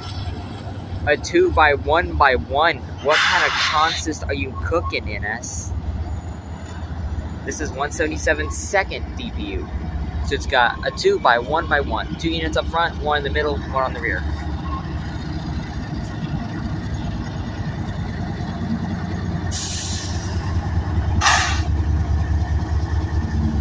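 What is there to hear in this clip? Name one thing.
A freight train rumbles slowly past.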